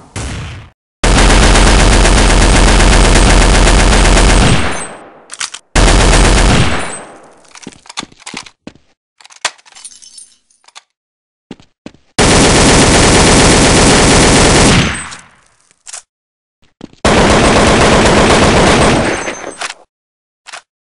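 A machine gun fires long, rapid bursts that echo and fade.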